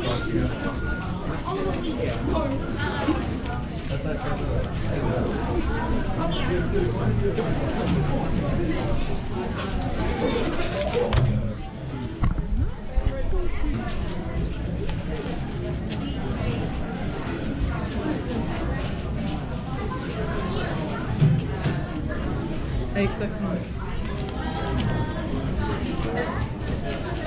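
A puzzle cube clicks rapidly as it is turned.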